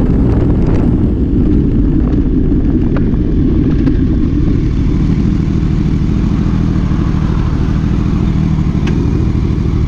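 A motorcycle engine idles low as it slows to a stop.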